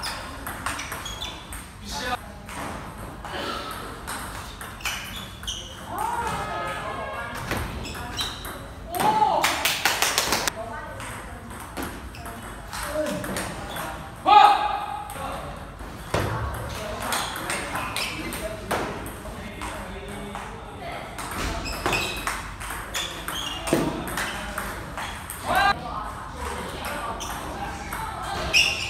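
A ping-pong ball clicks back and forth off paddles and a table in a rally.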